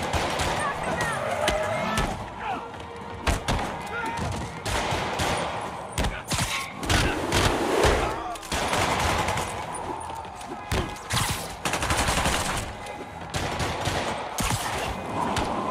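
Punches and kicks thud against bodies in quick bursts.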